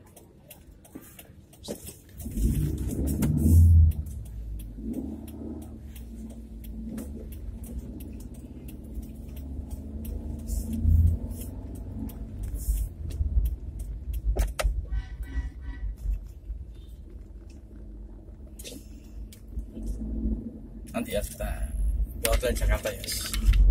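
Rain patters on a car windscreen.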